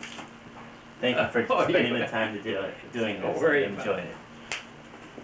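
An elderly man talks and laughs warmly close by.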